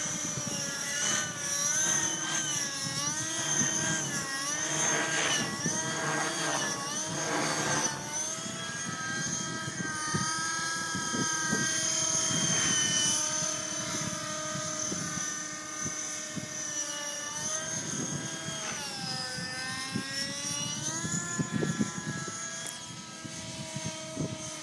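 A nitro radio-controlled helicopter whines overhead, its engine rising and falling in pitch as it manoeuvres.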